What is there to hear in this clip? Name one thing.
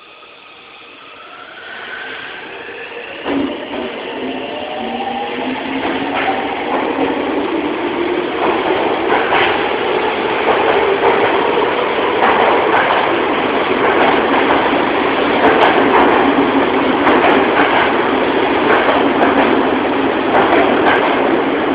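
Steel wheels roar on rails as a subway train speeds up, echoing in an underground station.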